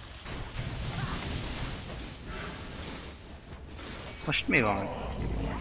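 Magic spells whoosh and crackle amid the clash of a fantasy battle.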